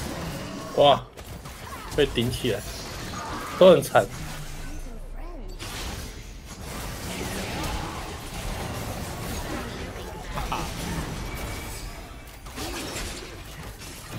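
Video game spell effects whoosh and crackle during a battle.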